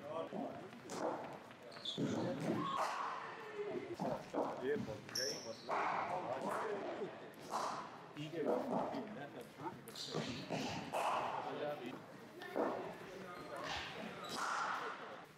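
Cricket balls crack off bats in an echoing indoor hall.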